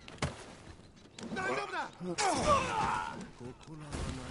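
Swords clash and strike in a close fight.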